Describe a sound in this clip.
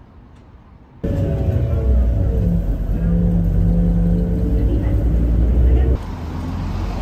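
A large vehicle's engine rumbles close by.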